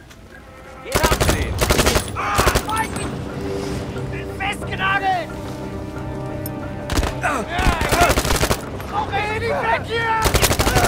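A rifle fires in bursts of shots.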